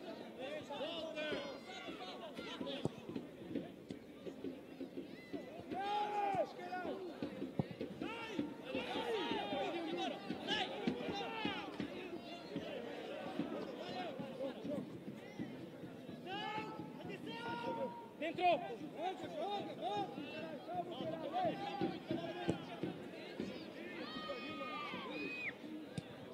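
Young men shout and call out to each other across an outdoor field.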